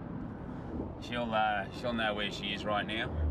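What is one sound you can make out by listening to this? A middle-aged man speaks earnestly close by.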